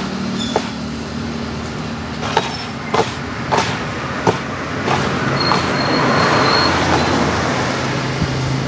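Hands squelch and slap through wet, crumbly dough.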